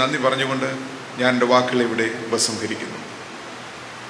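A man speaks slowly through a microphone.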